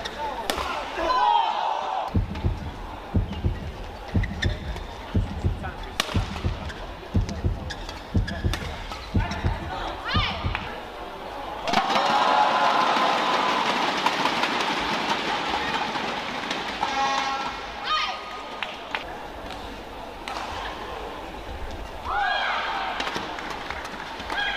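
Shoes squeak on a hard court.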